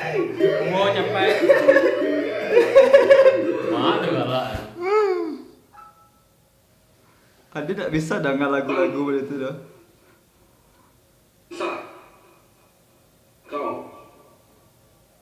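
Several young men laugh loudly close by.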